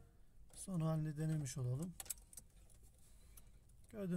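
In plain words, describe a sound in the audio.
A car key clicks as it turns in the ignition.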